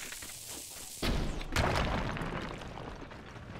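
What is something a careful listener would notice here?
A bomb arrow explodes with a loud boom.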